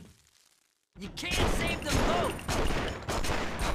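A pistol fires loudly.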